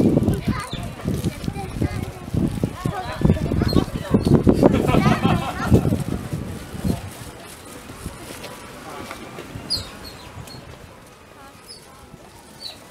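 Otters give short, high-pitched squeaks and chirps.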